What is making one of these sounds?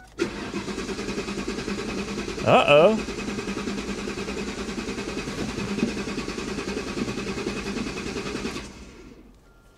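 A car engine idles with a steady low rumble, then shuts off.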